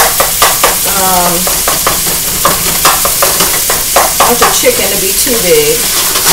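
A spatula scrapes and knocks against a frying pan.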